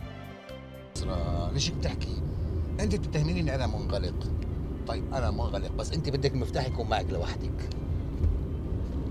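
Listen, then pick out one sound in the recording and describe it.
A car engine hums as a car drives past on a road.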